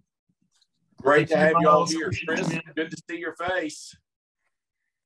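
An older man speaks with animation over an online call.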